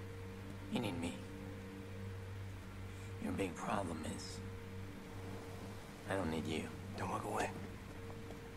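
A man speaks calmly and quietly, close by.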